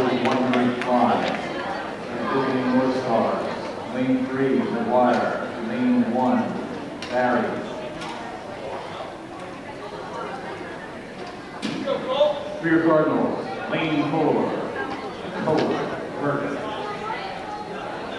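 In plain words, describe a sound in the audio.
A crowd of spectators cheers and shouts, echoing around a large indoor pool hall.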